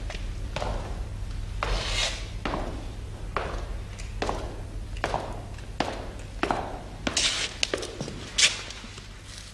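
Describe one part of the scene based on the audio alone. Footsteps descend stone stairs, echoing in a large hall.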